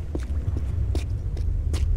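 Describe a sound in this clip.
Light footsteps tap on stone.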